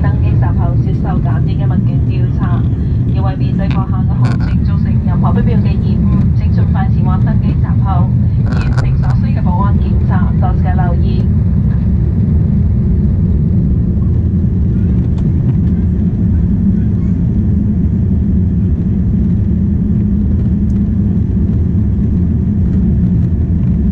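A jet engine roars steadily inside an airliner cabin.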